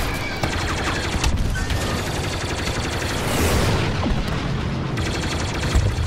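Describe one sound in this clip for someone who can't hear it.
Laser cannons fire in quick bursts.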